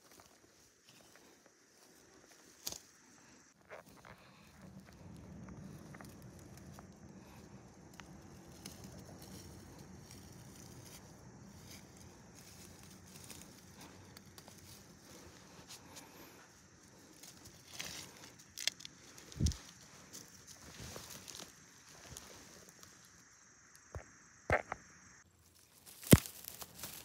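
A gloved hand rustles through dry pine needles.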